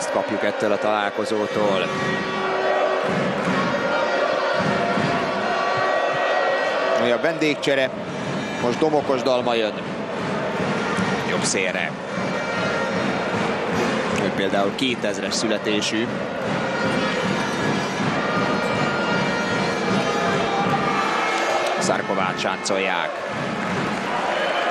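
A large crowd cheers and chants in a big echoing arena.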